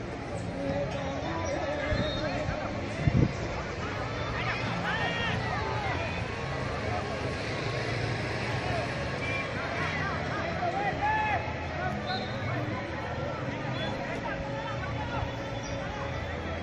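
Men shout to each other across an open field in the distance.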